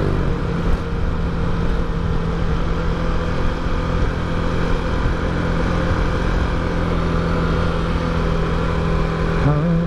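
A motorcycle engine hums steadily, revving up near the end.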